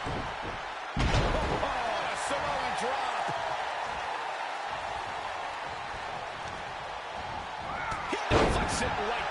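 Heavy bodies thud onto a wrestling mat.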